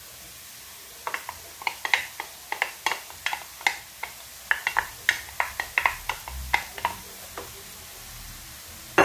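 A plastic container knocks against the rim of a pot.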